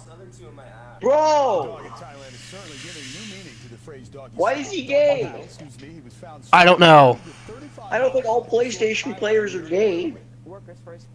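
Teenage boys laugh loudly over an online call.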